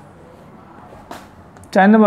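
A marker taps and squeaks on a whiteboard.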